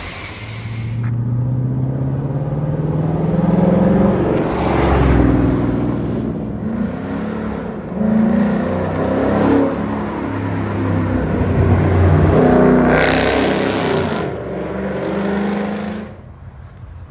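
A car engine revs loudly and roars past.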